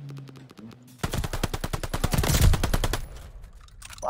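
A gun fires in rapid bursts close by.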